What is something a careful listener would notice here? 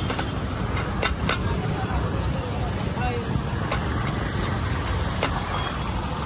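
A metal spatula taps and scrapes against a pan.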